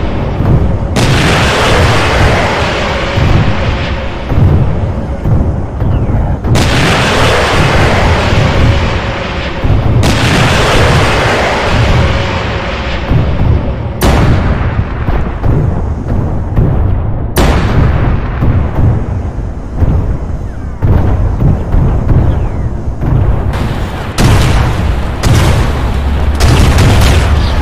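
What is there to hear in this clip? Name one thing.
Heavy explosions boom and roar again and again.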